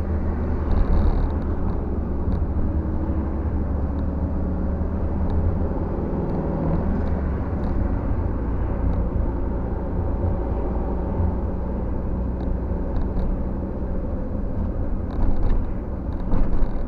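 A car's engine hums and tyres roll on wet asphalt, heard from inside the car.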